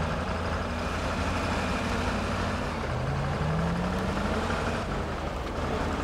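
A truck engine rumbles and strains, rising in pitch.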